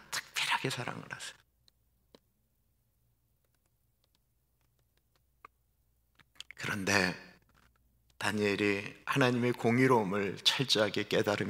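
A middle-aged man speaks through a microphone with animation, pausing now and then.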